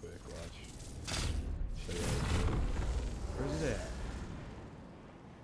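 A loud rushing whoosh launches a game figure into the air.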